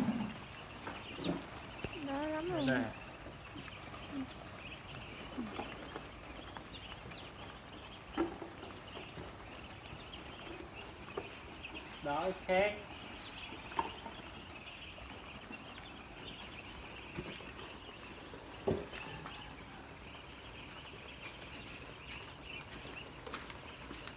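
A large flock of ducklings peeps and chirps constantly.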